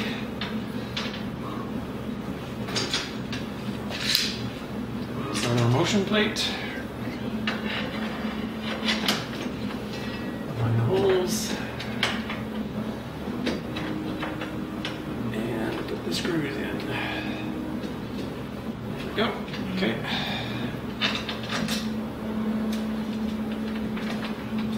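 Metal parts clink and clatter as they are handled.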